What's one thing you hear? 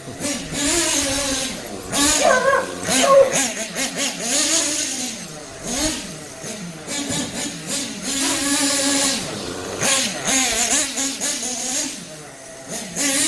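A nitro-engine RC buggy whines as it revs up and down while racing around.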